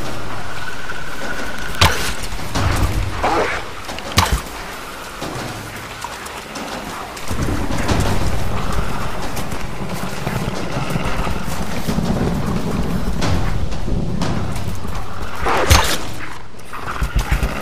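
Wolves snarl and growl close by.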